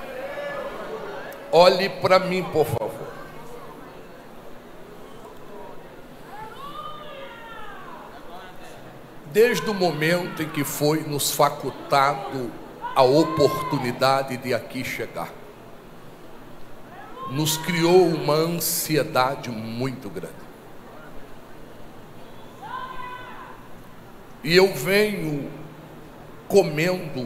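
A man preaches with animation through a microphone in an echoing hall, pausing between phrases.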